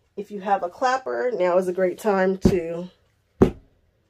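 A wooden block is set down on a padded board with a soft knock.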